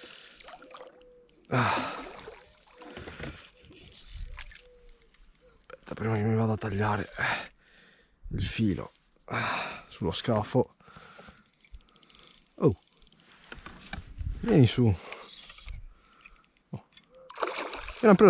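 A fishing reel whirs as the line is wound in.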